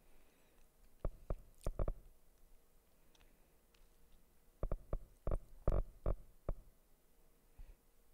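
Soft electronic clicks tick in quick succession.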